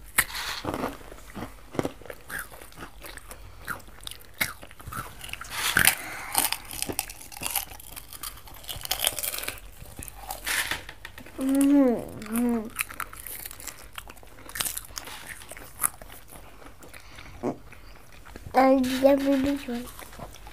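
Children crunch and munch on snacks close by.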